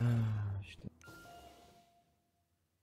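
A short game interface chime sounds.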